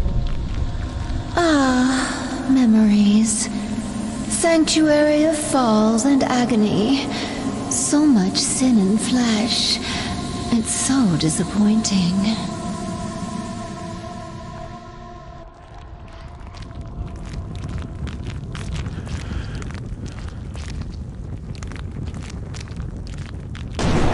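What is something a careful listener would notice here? Flames crackle and hiss steadily.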